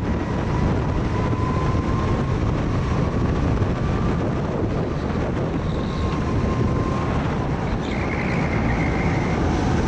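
A kart engine buzzes loudly and steadily up close.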